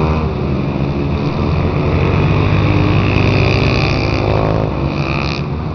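Motorcycle engines roar loudly as bikes pass close by.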